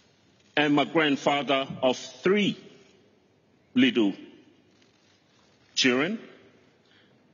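A middle-aged man speaks slowly and solemnly into a microphone, with long pauses.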